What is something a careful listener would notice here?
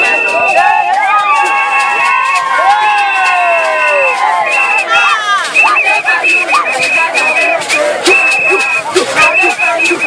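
Women cheer and shout with excitement close by.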